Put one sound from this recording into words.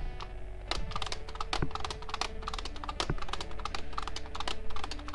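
Guitar music plays from a rhythm game.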